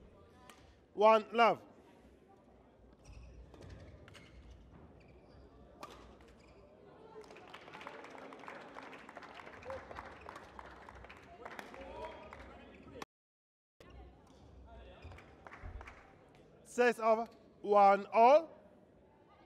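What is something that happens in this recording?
Young women shout with excitement in a large echoing hall.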